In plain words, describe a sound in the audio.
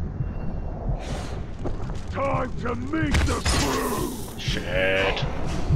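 A fiery blast bursts and crackles.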